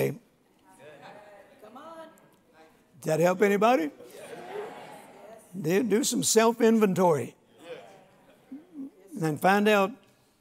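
An elderly man preaches with emphasis through a microphone in a large room.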